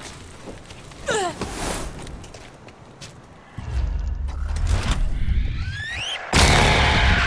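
A creature shrieks.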